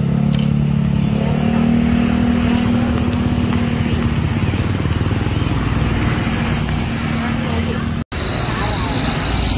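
Motorbike engines hum and buzz as they pass by on a road.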